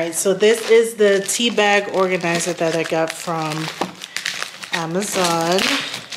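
Plastic packaging crinkles in hands.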